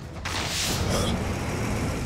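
A fiery spell roars in a burst.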